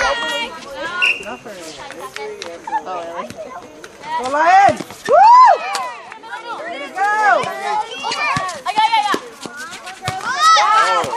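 A volleyball thumps off hands.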